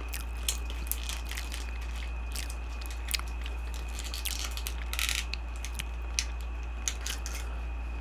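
A plastic lid peels off a small cup.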